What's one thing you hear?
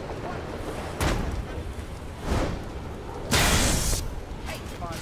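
A heavy thud booms.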